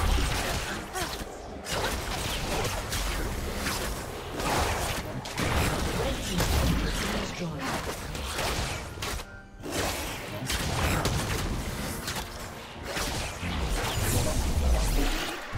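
Magic spells whoosh and crackle during a video game battle.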